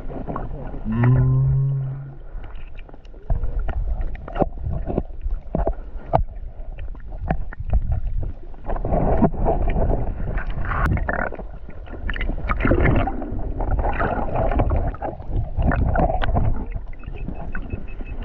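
Water gurgles and sloshes around the microphone underwater.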